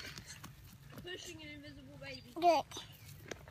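A young child vocalizes in a high voice close by.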